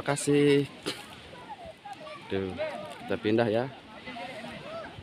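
Young children call out in high voices.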